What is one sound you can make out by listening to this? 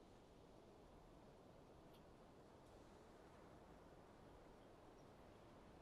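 Calm sea water laps softly against a quay.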